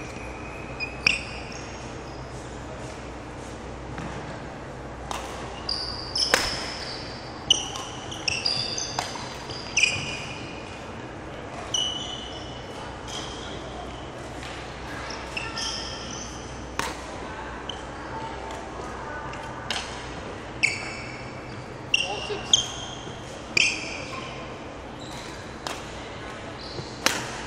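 Rackets smack shuttlecocks back and forth in a large echoing hall.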